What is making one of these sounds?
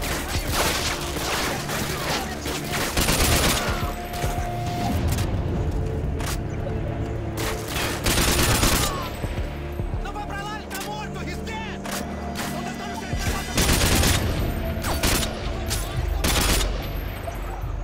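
Gunfire rattles out in loud bursts.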